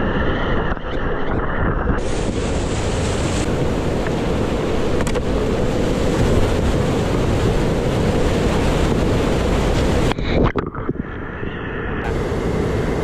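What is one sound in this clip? Whitewater rapids roar loudly and steadily close by.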